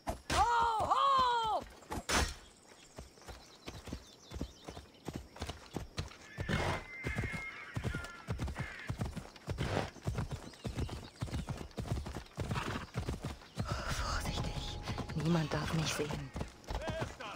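A horse's hooves thud in a quick, steady beat.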